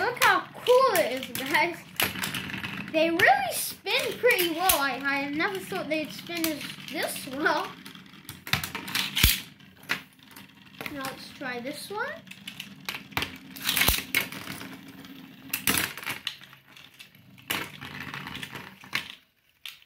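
Spinning tops whir and clatter against each other on a plastic tray.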